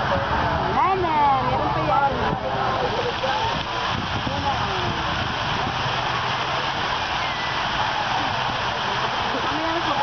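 Fountain jets spray and splash into water with a steady hiss.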